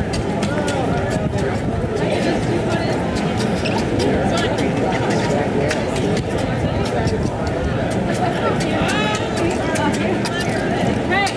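A crowd chatters and calls out loudly outdoors.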